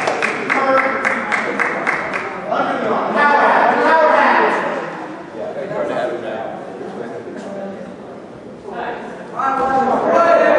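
A crowd of spectators shouts and cheers loudly in a large echoing hall.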